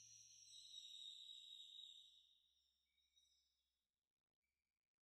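A mallet taps a hand drum.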